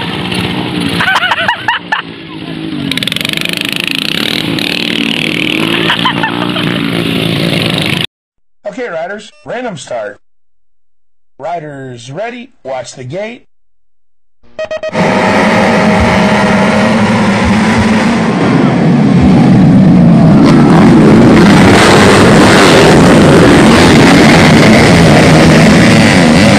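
Motorcycle engines rev and roar close by.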